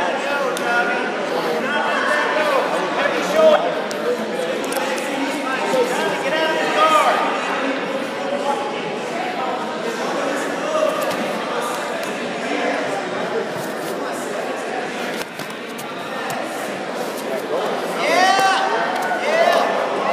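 A crowd of men and women shouts and cheers throughout, echoing in a large hall.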